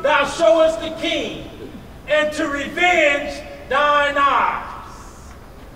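A man speaks loudly and expressively in a room with some echo.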